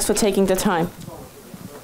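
A woman speaks into a microphone over loudspeakers.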